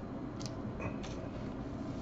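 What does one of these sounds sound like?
Foil card packs crinkle as hands shuffle them.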